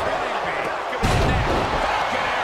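A body slams heavily onto a ring mat.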